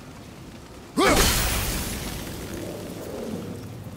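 An axe strikes with a loud, ringing crack.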